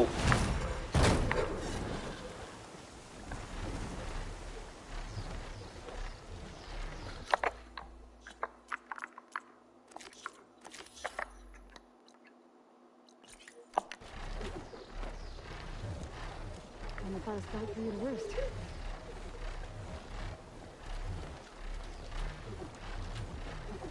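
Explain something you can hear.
Wind rushes past during flight.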